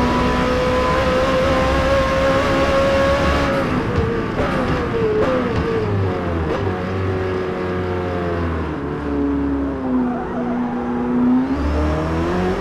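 A car engine roars at high speed, then drops in pitch as it slows through gear changes and revs up again.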